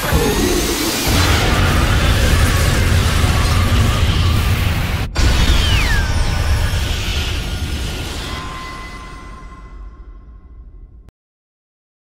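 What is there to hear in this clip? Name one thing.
A huge blast roars and rumbles.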